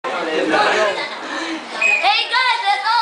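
Teenage girls chatter and laugh nearby.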